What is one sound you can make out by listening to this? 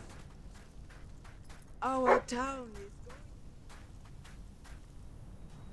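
Quick footsteps patter on a dirt path.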